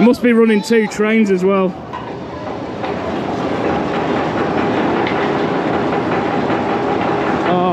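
A roller coaster roars and rumbles along its track.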